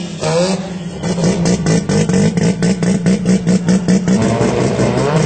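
A drag-racing car's engine bounces off the rev limiter in rapid pulses.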